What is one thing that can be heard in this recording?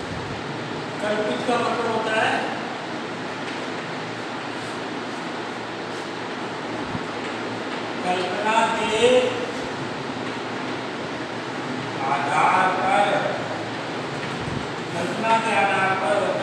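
A middle-aged man speaks calmly in short phrases.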